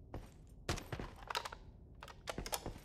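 A rifle magazine is swapped with metallic clicks.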